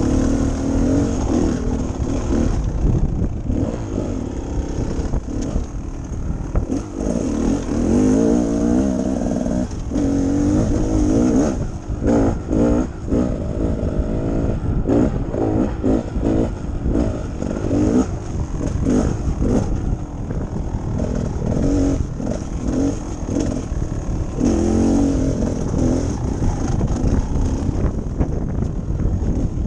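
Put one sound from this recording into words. A dirt bike engine revs and drones up close, rising and falling in pitch.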